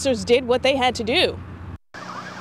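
A young woman speaks clearly into a microphone, reporting calmly.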